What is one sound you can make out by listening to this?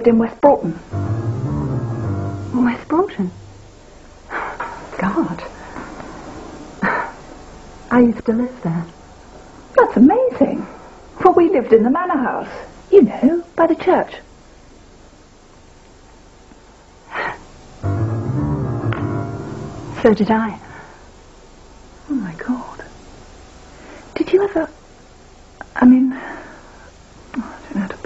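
A woman speaks calmly and closely in conversation.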